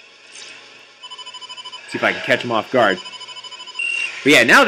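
A rapid electronic beeping sounds.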